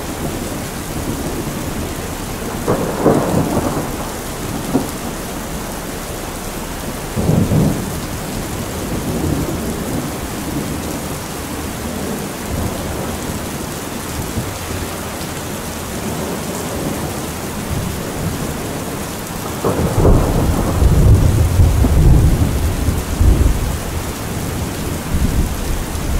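Heavy rain drums steadily on a metal roof, outdoors.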